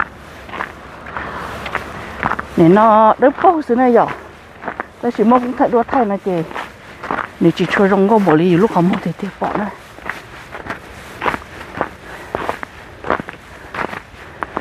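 A car drives steadily along a road.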